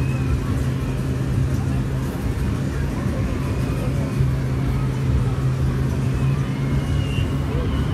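A fairground ride rumbles and clatters along its track.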